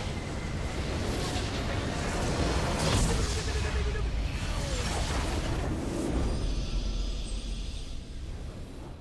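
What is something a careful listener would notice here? A game structure explodes with a loud, rumbling blast.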